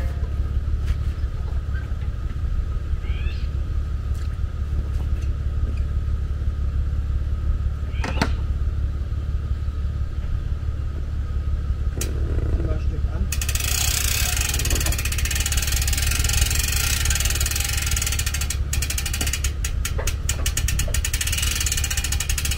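A man knocks and bumps against an inflatable boat.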